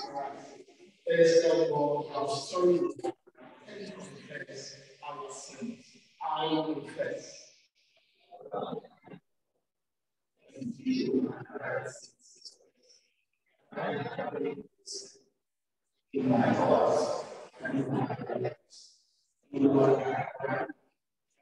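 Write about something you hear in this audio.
A man speaks calmly through a microphone in an echoing hall, with pauses between phrases.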